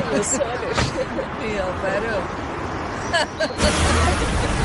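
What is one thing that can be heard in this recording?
Several middle-aged women chat and laugh nearby.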